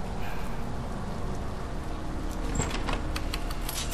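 A metal panel door creaks open.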